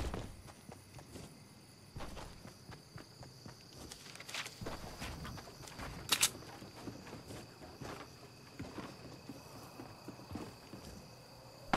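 Wood creaks and thuds as a ramp is built.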